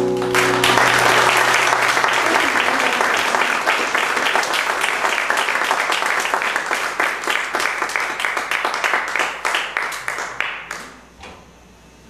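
An audience claps and cheers loudly, then the applause fades away.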